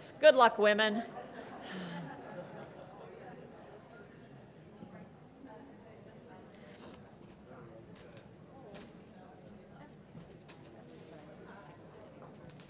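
An audience murmurs quietly.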